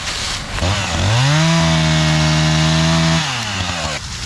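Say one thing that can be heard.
A chainsaw revs up and cuts through a branch.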